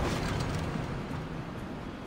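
Heavy footsteps thump on wooden planks.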